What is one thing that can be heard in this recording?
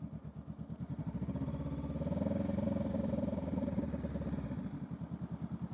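A parallel-twin motorcycle engine revs briefly and settles back.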